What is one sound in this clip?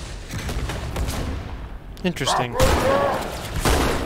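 An explosion bursts with a crackling roar.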